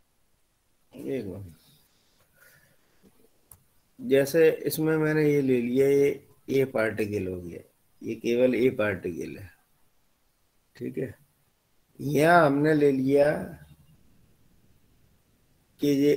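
A man lectures through an online call.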